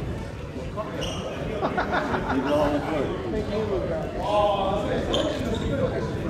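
People talk in the distance in a large echoing hall.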